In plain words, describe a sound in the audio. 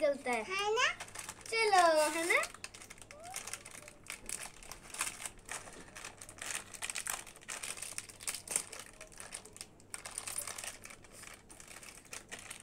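A plastic wrapper crinkles and rustles as it is opened.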